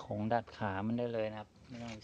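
Metal wrenches clink together.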